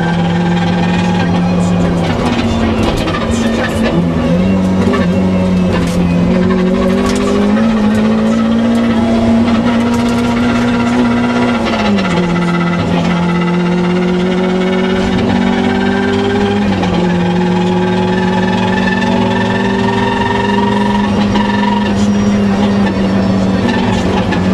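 A rally car engine roars loudly from inside the cabin, revving up and down as gears change.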